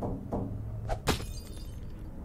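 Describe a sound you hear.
Glass cracks sharply.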